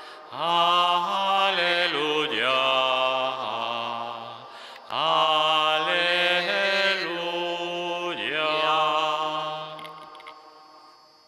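An elderly man chants in a large echoing hall.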